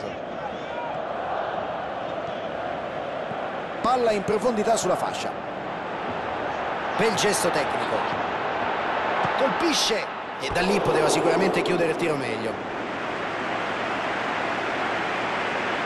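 A stadium crowd roars and chants steadily throughout.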